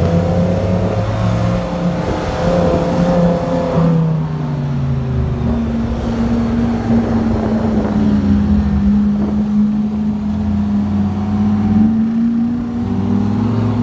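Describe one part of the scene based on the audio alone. A sports car engine roars loudly close by, its pitch rising and falling.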